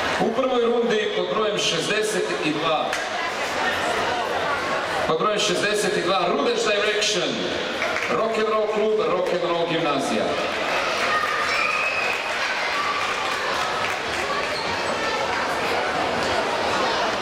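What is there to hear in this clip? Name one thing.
A large crowd of children and adults chatters and calls out in a big echoing hall.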